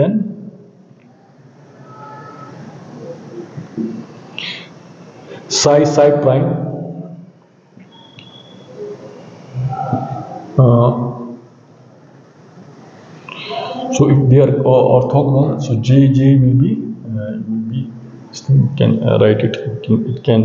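A middle-aged man speaks calmly, explaining.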